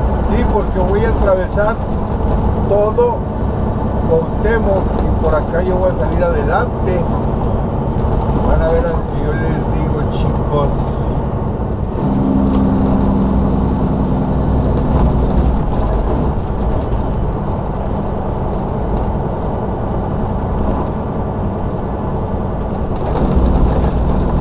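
Wind buffets loudly against the vehicle.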